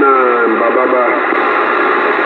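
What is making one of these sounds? A radio squeals with a short warbling tone at the start.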